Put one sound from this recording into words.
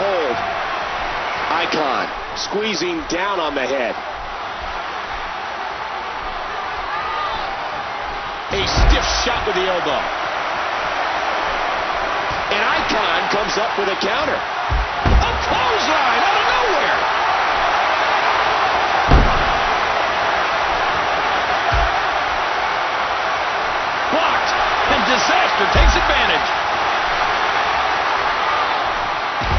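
A crowd roars steadily in a large arena.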